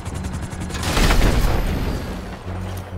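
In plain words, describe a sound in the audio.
A helicopter explodes with a loud boom.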